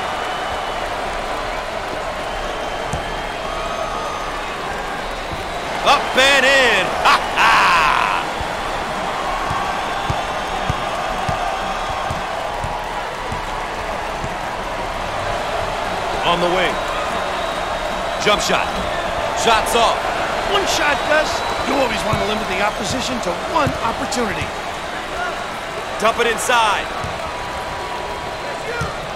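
A large crowd murmurs and cheers steadily in an echoing arena.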